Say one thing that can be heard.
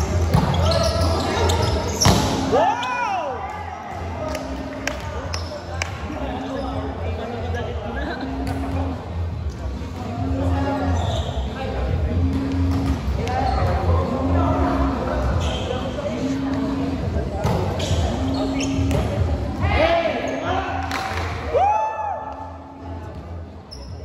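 Young men and women shout and call out to each other in a large echoing hall.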